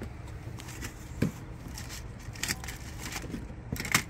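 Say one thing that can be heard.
Beads and trinkets clink softly as a hand rummages through them.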